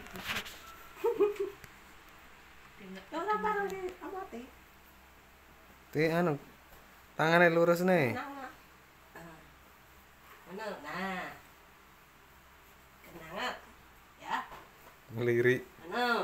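A woman speaks softly and playfully up close.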